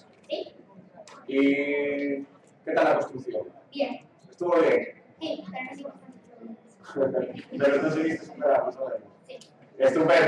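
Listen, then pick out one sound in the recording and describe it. A young boy answers briefly into a microphone.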